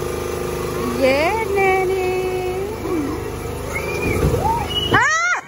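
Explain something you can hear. A young girl squeals and calls out.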